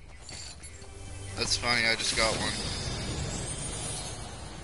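A treasure chest gives off a ringing, shimmering hum.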